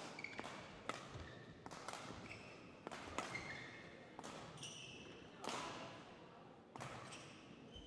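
Rackets smack a shuttlecock back and forth in a sharp, quick rally.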